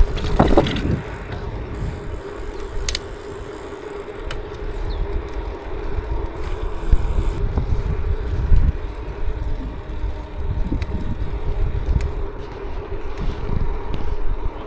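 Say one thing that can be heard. Bicycle tyres hum softly on smooth asphalt.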